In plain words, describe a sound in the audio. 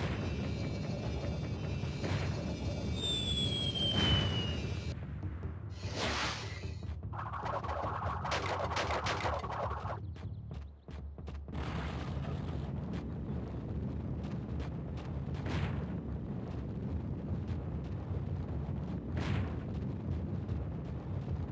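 Video game music and sound effects play from a television.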